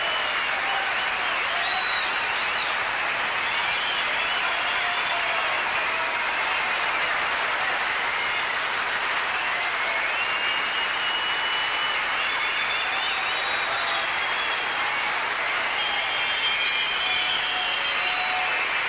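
A large audience applauds steadily in a big hall.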